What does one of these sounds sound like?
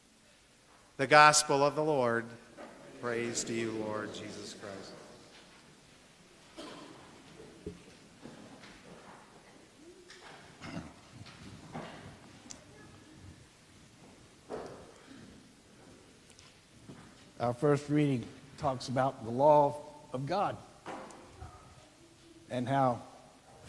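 A man sings through a microphone in an echoing hall.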